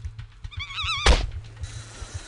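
A hand slaps a creature with a loud smack.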